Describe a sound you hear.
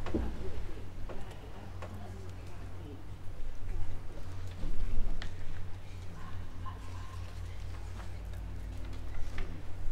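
Footsteps walk slowly along the aisle of a large echoing hall.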